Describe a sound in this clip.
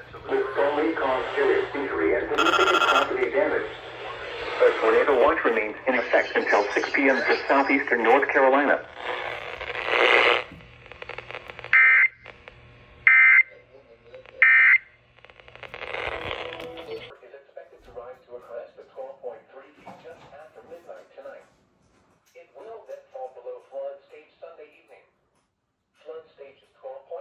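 A radio plays speech through a small loudspeaker.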